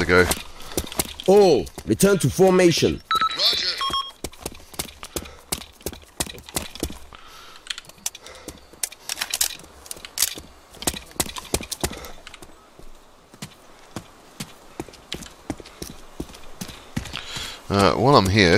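Footsteps tread steadily on rough ground.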